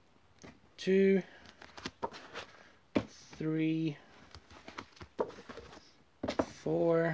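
Books slide and knock against a wooden shelf.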